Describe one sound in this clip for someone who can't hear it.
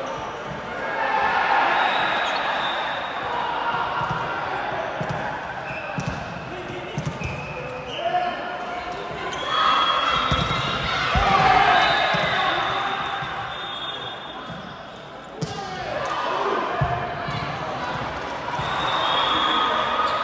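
Young women call out and cheer in a large echoing hall.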